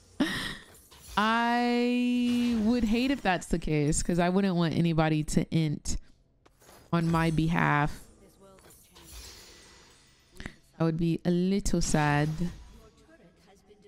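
A young woman talks and sings with animation into a close microphone.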